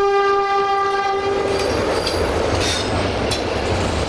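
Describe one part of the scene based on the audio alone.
Train wheels clatter over the rails as carriages rush past close by.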